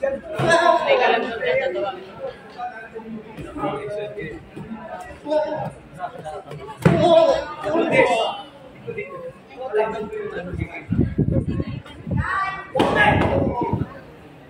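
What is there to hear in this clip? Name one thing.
Kicks thump against padded body guards.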